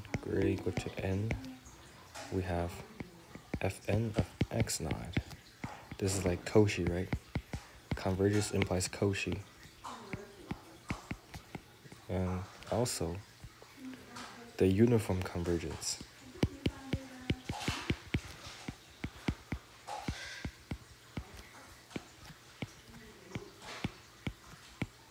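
A stylus taps and scratches on a tablet's glass.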